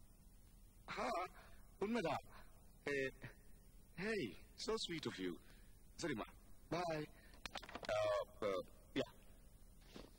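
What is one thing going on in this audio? A young man talks on the phone with animation, close by.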